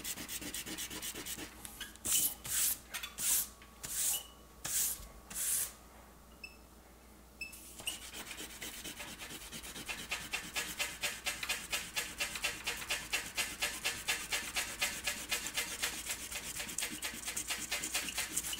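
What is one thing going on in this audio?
An airbrush sprays with a hissing sound, in bursts and rapid pulses.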